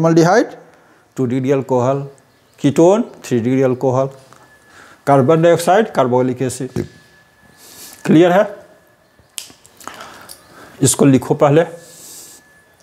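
A middle-aged man speaks calmly close to the microphone, explaining.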